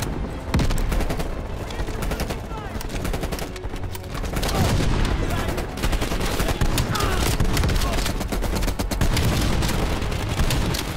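Explosions rumble in the distance.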